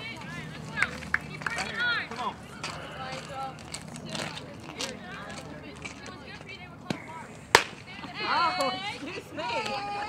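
Young women shout and cheer from across an open field.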